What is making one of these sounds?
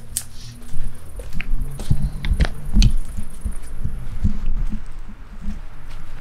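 Footsteps tread on paving stones close by.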